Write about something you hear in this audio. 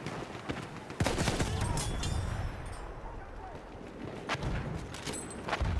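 Explosions boom and rumble close by.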